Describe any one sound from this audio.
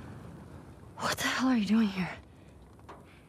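A young woman asks something in a tense, hushed voice.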